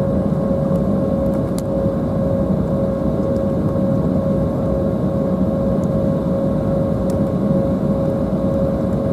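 Jet engines hum steadily from inside a taxiing airliner.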